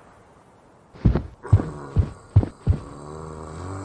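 Blows land on a zombie in a quick series of thumps.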